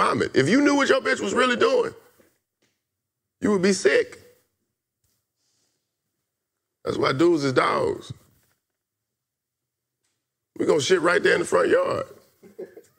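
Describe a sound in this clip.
A young man speaks with animation close to a microphone, in short bursts with pauses.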